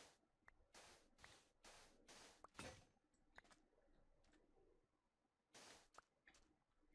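Sand crunches in quick bursts as it is dug away.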